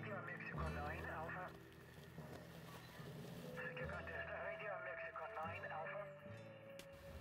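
Faint, thin voices come through a small radio loudspeaker with crackle.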